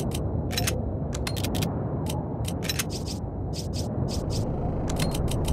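Menu selection sounds click quickly and repeatedly.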